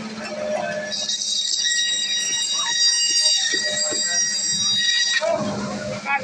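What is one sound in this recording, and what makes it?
A band saw cuts through a fish with a high, grinding whine.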